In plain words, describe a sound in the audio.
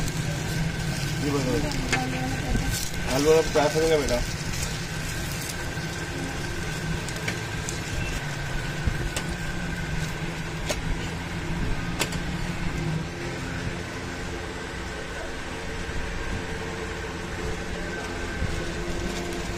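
Flatbreads sizzle on a hot griddle.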